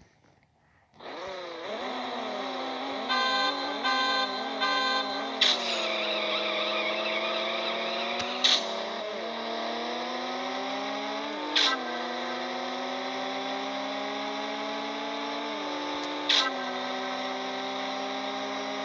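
A car engine revs in short bursts, then roars and climbs as gears shift.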